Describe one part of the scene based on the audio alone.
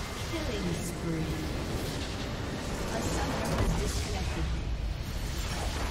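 Spell effects crash and boom in a game battle.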